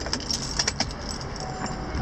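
Keys jingle softly in a hand.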